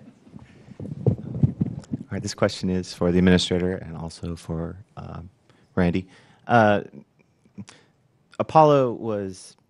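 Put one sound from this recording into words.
A middle-aged man asks a question calmly through a handheld microphone.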